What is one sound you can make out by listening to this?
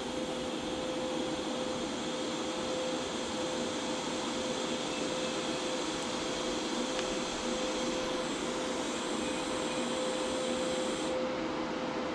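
A welding arc hisses and crackles steadily.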